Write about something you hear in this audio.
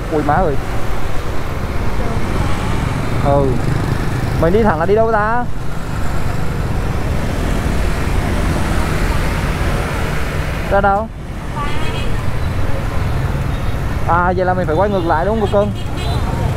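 Motorbikes and cars drive by in traffic.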